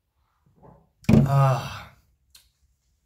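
A young man sighs loudly.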